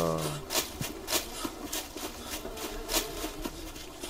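Footsteps crunch over dry leaves and grass.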